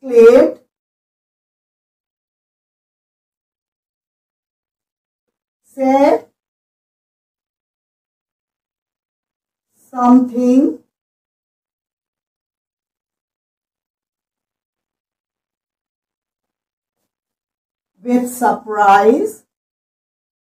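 A woman speaks calmly in short phrases, close by, with long pauses between them.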